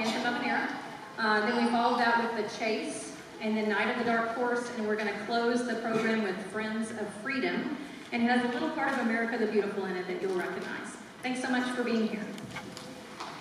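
A woman speaks calmly into a microphone through loudspeakers in a large echoing hall.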